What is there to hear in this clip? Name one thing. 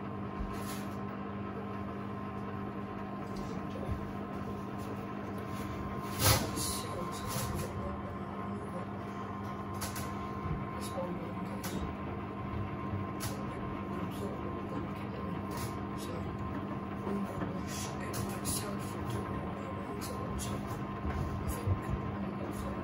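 Laundry thumps softly against the drum of a washing machine.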